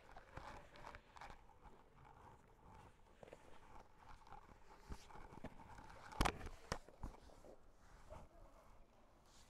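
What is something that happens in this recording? Bodies shift and thump on a padded mat.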